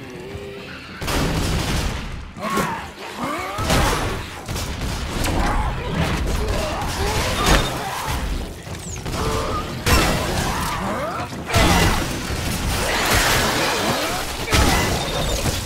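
Guns fire in sharp, loud bursts.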